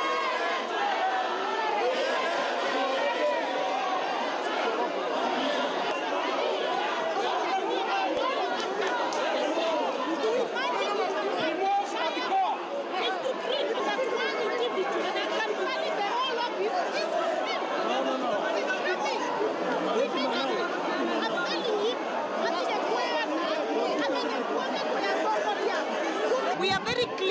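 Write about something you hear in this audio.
A crowd of men and women talks and shouts over one another, close by.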